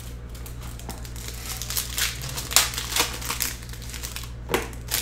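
Plastic wrapping crinkles and rustles as hands tear it.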